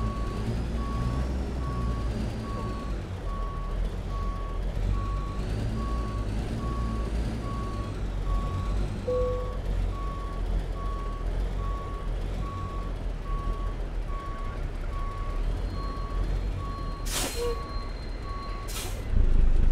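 A reversing alarm beeps at an even pace.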